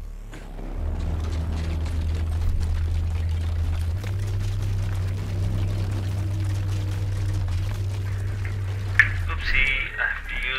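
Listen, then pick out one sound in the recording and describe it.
A heavy vehicle engine rumbles steadily, then cuts off.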